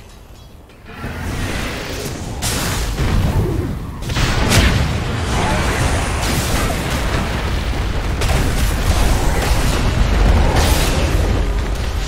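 Spell effects blast and crackle in a fierce fight, growing loud and dense.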